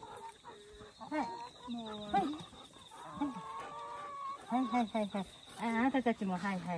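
A dog whines and yelps excitedly up close.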